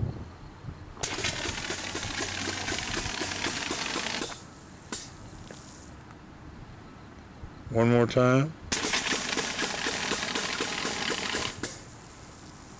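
A sprayer hisses loudly as it shoots a jet of liquid.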